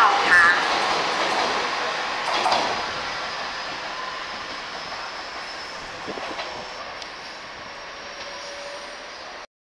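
An electric train rolls away along the tracks, its rumble slowly fading.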